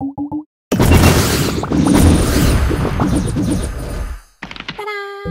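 Game tiles burst and crunch with bright sound effects.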